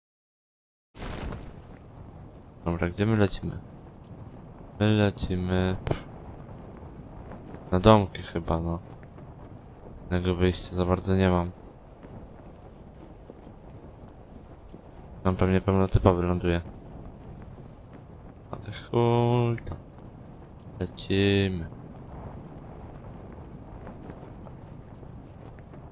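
Wind rushes steadily past during a parachute descent.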